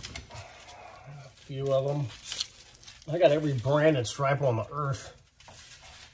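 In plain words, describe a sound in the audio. A middle-aged man talks calmly close by.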